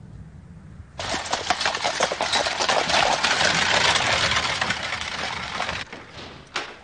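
Horse hooves clatter and carriage wheels rumble past.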